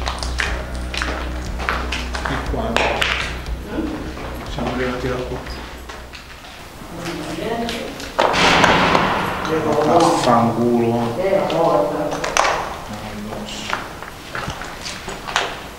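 Footsteps crunch over loose rubble and debris.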